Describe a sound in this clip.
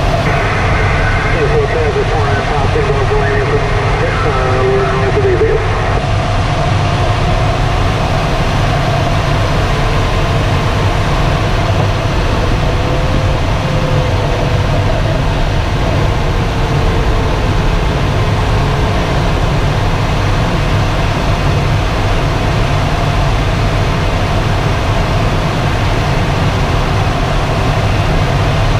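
Air rushes steadily past the canopy of a gliding aircraft.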